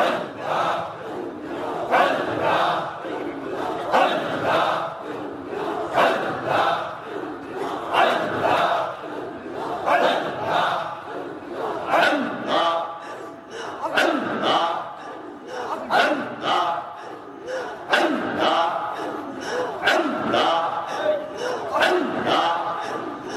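A middle-aged man chants loudly and with emotion through a microphone and loudspeakers.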